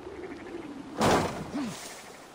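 A heavy thud sounds as a figure lands hard on the ground.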